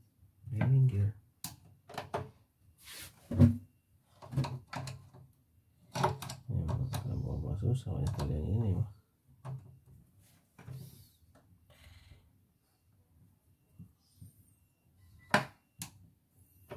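A screwdriver clicks and scrapes against small metal parts.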